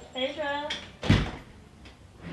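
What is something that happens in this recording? A door thuds shut.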